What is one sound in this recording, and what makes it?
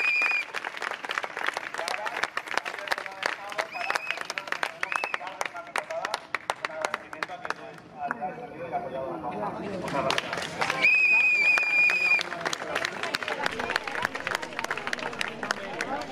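A crowd claps outdoors.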